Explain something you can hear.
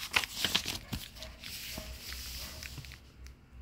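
A hand rubs across a paper page.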